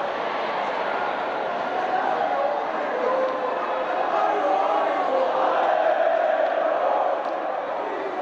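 Young women shout and cheer in celebration.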